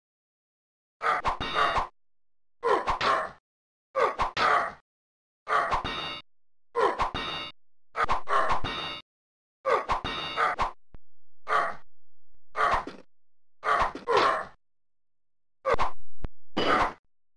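Swords clash and ring again and again.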